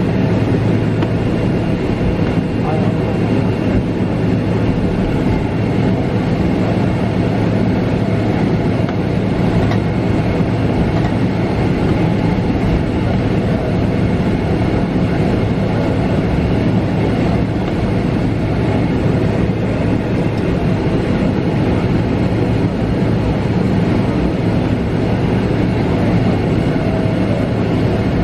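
A jet engine hums and roars steadily, heard from inside an aircraft cabin.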